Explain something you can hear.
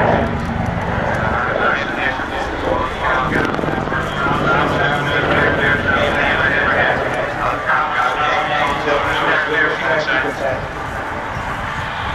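A helicopter flies overhead, its rotor thudding and engine roaring steadily.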